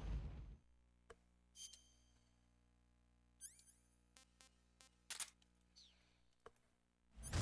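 Short electronic clicks sound as a game menu is browsed.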